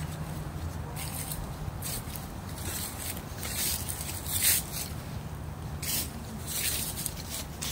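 Dry leaves rustle and crackle as a small dog noses through them.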